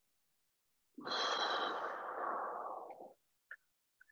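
A man exhales loudly through an online call.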